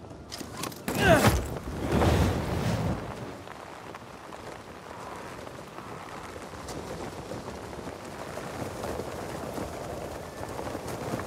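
Wind rushes steadily past during a fall through open air.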